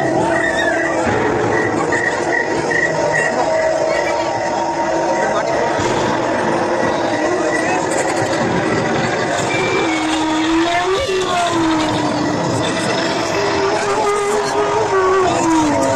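A crowd of people talk and shout nearby.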